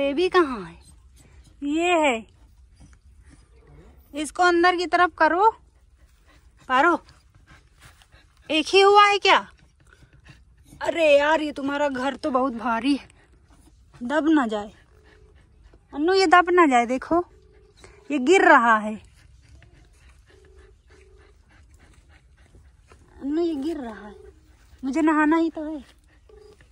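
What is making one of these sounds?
A dog whines in high, bending cries close by.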